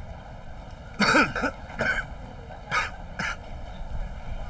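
A young man chuckles nearby.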